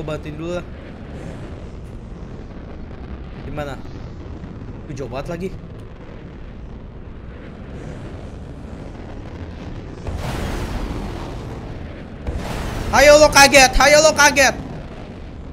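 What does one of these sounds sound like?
A young man talks into a close microphone, now and then with animation.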